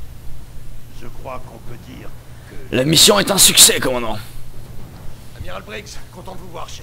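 A middle-aged man speaks calmly and close, with a low voice.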